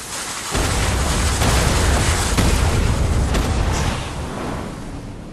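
Wind rushes loudly during a fast fall through the air.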